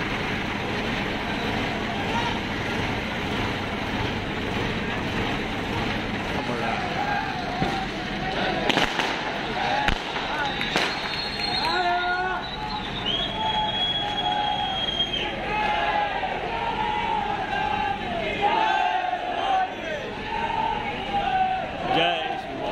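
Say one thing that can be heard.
A crane engine hums steadily.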